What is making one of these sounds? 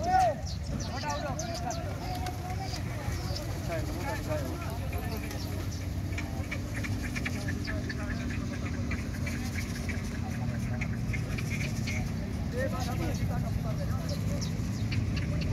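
Pigeons flap their wings as a flock flies overhead.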